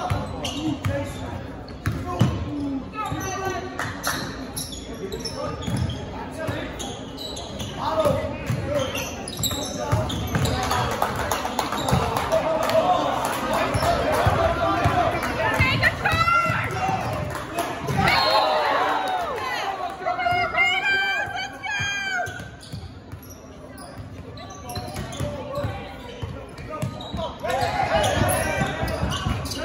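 Spectators talk and shout in a large echoing gym.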